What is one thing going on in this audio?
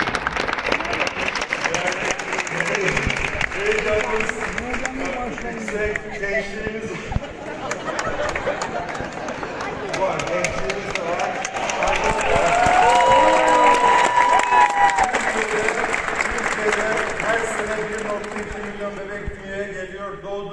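A large crowd claps along.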